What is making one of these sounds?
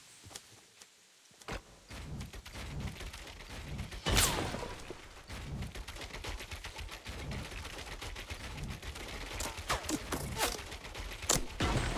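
Wooden walls snap into place with sharp knocks.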